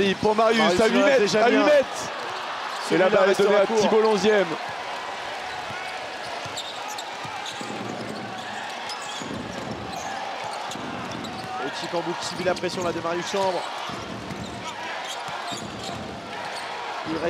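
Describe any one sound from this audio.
A large indoor crowd murmurs in an echoing arena.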